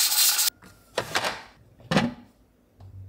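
A metal pot lid clanks open.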